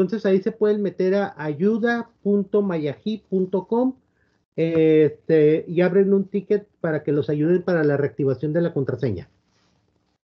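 A middle-aged man speaks calmly through an online call microphone.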